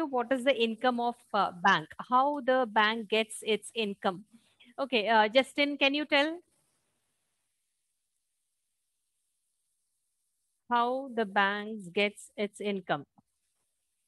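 A woman speaks calmly into a headset microphone, close by.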